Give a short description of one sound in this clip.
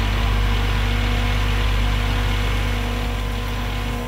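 Dirt and rocks rumble as an excavator bucket dumps them.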